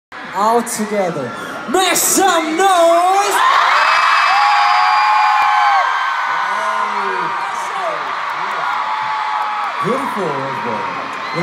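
A young man sings into a microphone over loud concert speakers.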